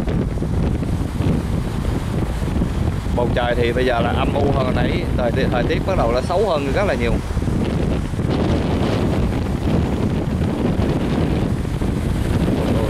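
Rough waves splash and crash against a boat's hull.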